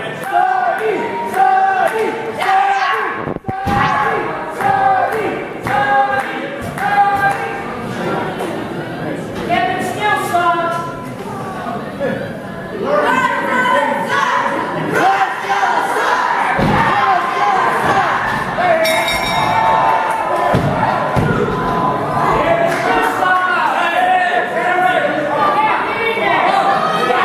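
A crowd chants and cheers in a large echoing hall.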